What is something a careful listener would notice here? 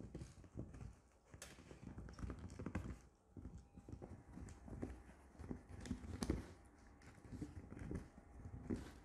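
A dog gnaws and crunches on a hard chew.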